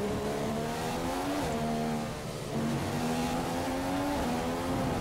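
A racing car engine screams at high revs, dropping in pitch at each gear change.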